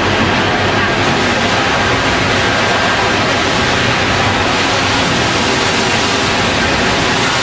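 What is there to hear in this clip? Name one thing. A fire hose sprays a powerful jet of water with a steady hiss.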